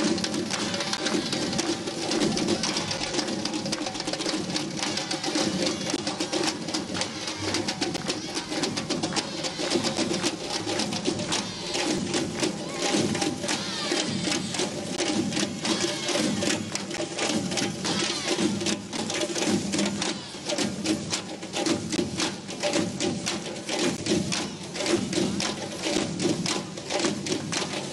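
Many frame drums beat together in a fast, steady rhythm.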